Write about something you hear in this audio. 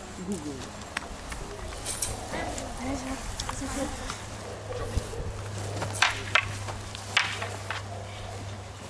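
Wooden staffs clack against each other.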